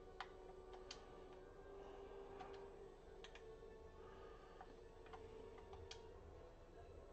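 Short electronic menu blips sound repeatedly.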